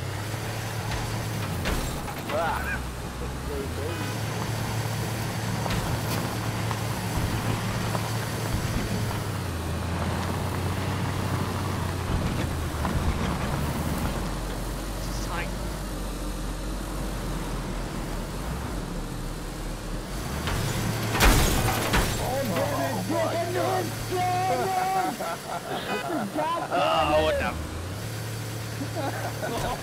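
A car engine drones steadily as the car drives.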